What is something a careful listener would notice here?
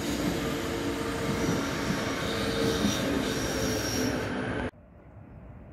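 A high-speed train rushes past close by.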